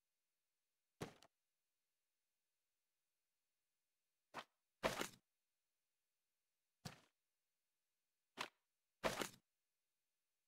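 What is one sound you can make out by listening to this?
Short game sound effects whoosh and thud as pieces are placed.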